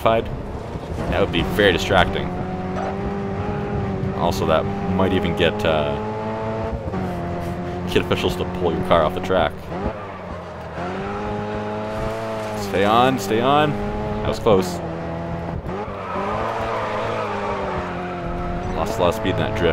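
Tyres screech as a car slides through corners.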